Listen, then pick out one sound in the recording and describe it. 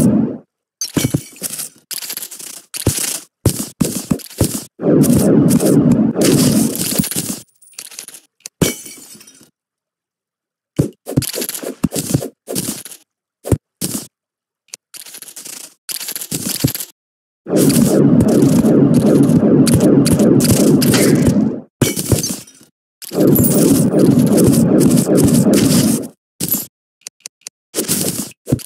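A pickaxe chips at stone in quick, sharp hits.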